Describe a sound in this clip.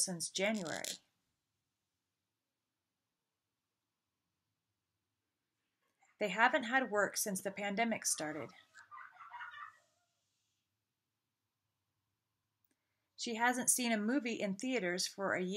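A middle-aged woman speaks calmly and close to the microphone, pausing between phrases.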